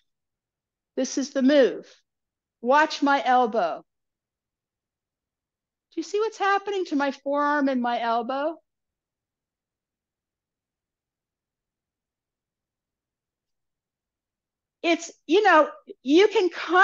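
An older woman speaks calmly and clearly close by, with pauses between phrases.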